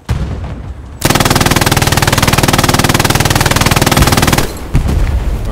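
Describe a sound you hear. A machine gun fires a rapid, loud burst.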